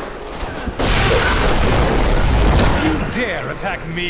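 Fiery explosions boom loudly.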